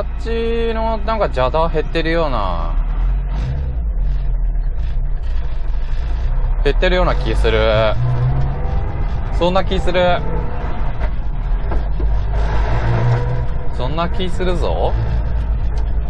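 A car engine revs up and drops in pitch between gear changes.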